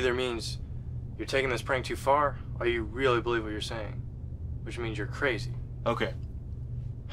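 A young man speaks calmly and close by.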